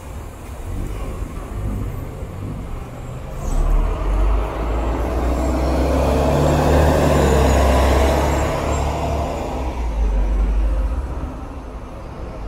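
A bus engine rumbles loudly as a bus pulls up close and passes by.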